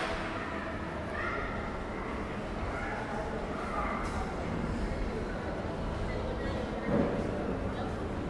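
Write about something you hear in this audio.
People talk quietly in the distance in a large echoing hall.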